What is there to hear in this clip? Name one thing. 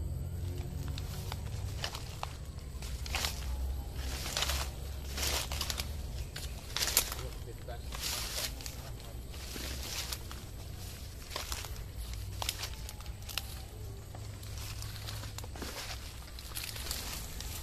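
Footsteps crunch and rustle through dry leaves and undergrowth.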